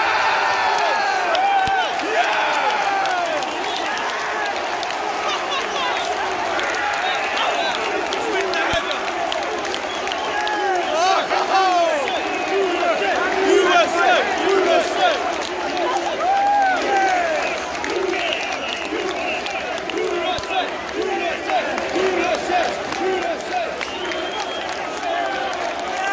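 A large stadium crowd cheers and chants loudly.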